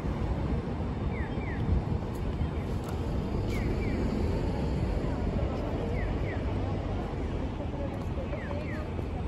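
Steady city traffic rumbles outdoors.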